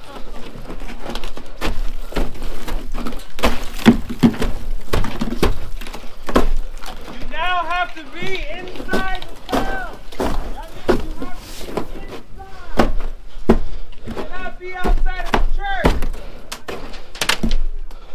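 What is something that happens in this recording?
Boots crunch and thud down snow-covered wooden stairs.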